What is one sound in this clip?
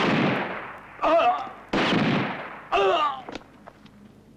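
A man shouts from a distance.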